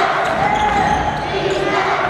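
A basketball is dribbled on a hardwood court.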